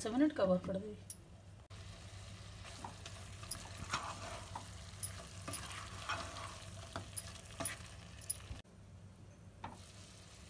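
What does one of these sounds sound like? A glass lid clinks onto a metal pot.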